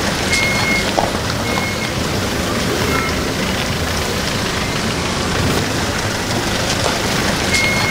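A second pickup truck drives past close by over a bumpy road.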